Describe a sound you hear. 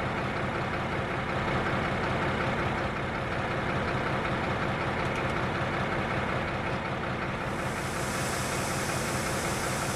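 A locomotive engine hums and rumbles steadily.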